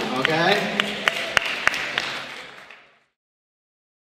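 A crowd claps in applause that quickly fades away.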